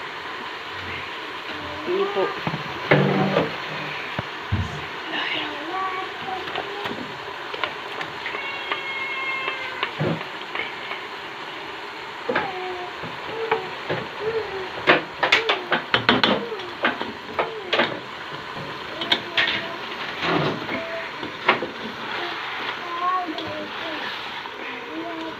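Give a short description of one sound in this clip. Food sizzles steadily in a hot pot.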